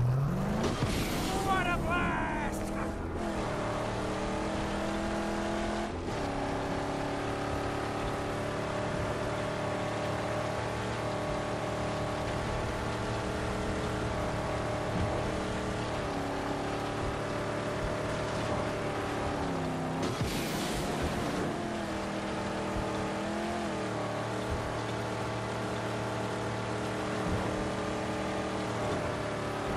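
A car engine drones at speed.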